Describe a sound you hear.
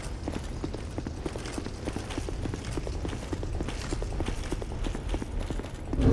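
Armored footsteps clank rhythmically on stone.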